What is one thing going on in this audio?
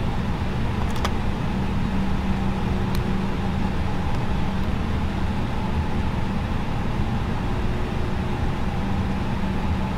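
The jet engines of an airliner hum steadily inside its cockpit.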